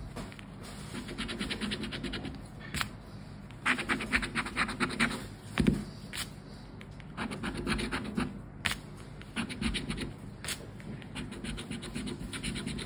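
A scraper rasps in quick, repeated strokes across a scratch card.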